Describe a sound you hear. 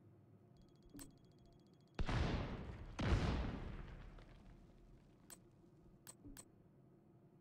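Menu selections click softly.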